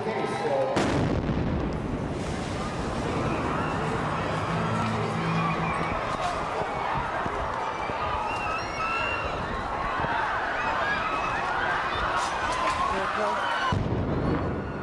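A crowd screams and shouts in panic.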